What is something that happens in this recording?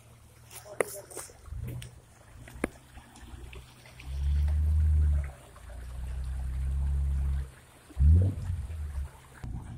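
Shallow water trickles over rocks.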